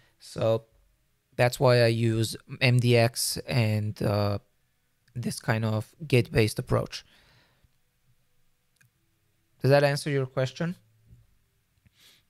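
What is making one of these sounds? A young man talks casually and close to a microphone, in short bursts with pauses.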